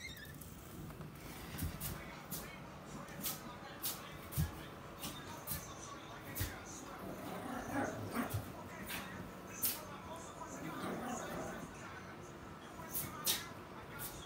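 A small dog's claws tap and patter on a hard floor.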